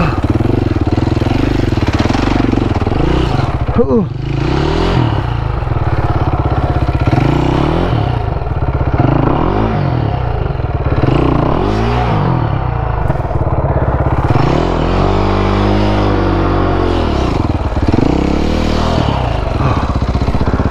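A dirt bike engine revs hard and sputters up and down close by.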